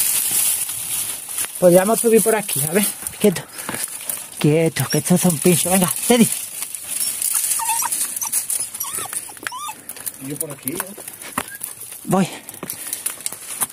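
Dry twigs and leaves rustle and scrape up close.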